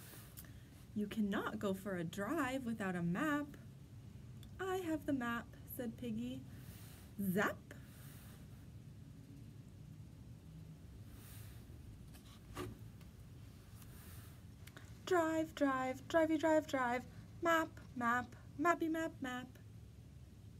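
A young woman reads aloud expressively, close by.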